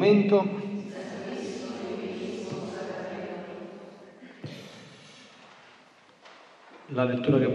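Voices sing a slow chant that echoes in a large hall.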